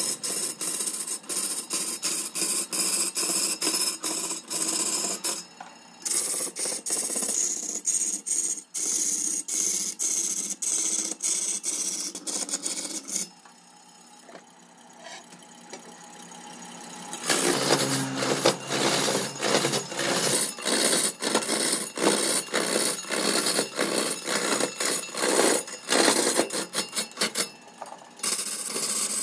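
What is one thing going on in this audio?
A lathe chisel scrapes and chatters loudly against a spinning log.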